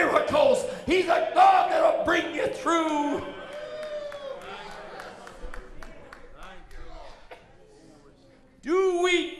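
A middle-aged man preaches loudly and passionately into a microphone in an echoing hall.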